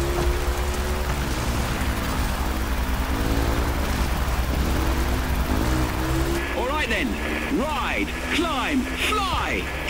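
A dirt bike engine revs and whines as it speeds along.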